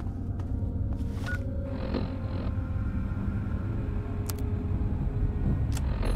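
A device clicks and beeps as its menu changes.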